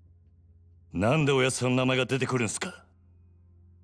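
A man speaks in a low, firm voice.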